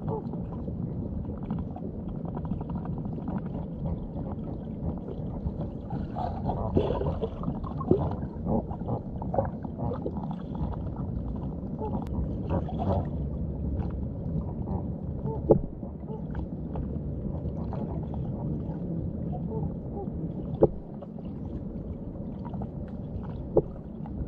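Water churns and burbles in a muffled underwater rumble.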